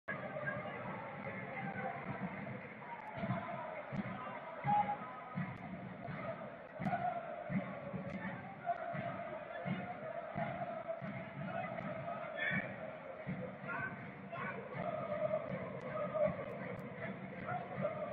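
A large crowd in a stadium chants and cheers steadily.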